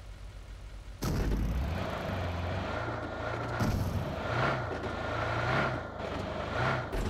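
A car engine revs and the car drives over rough ground.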